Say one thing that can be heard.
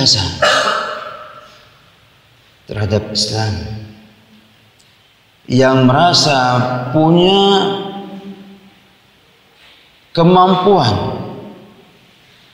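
A man speaks calmly into a microphone in an echoing room, pausing between phrases.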